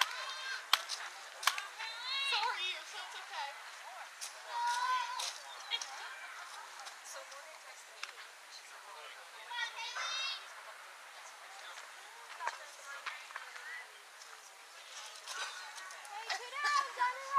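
Young girls shout and chant outdoors at a distance.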